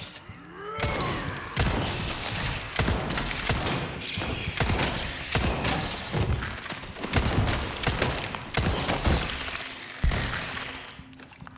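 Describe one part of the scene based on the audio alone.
Gunshots ring out again and again.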